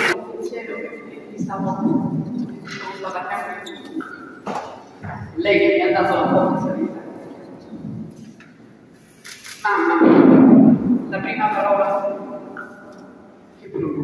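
A young woman speaks calmly through a microphone in an echoing hall.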